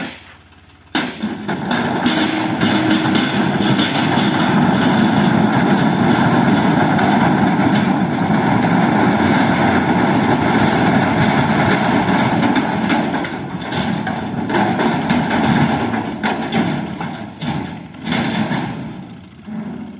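A load of rocks slides and rumbles out of a tipping trailer.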